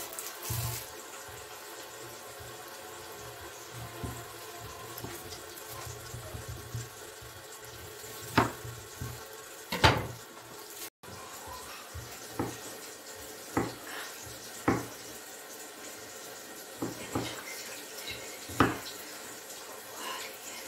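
A knife chops through cucumber and knocks on a wooden board.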